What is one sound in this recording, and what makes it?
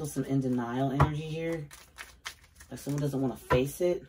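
Playing cards shuffle and riffle in hands.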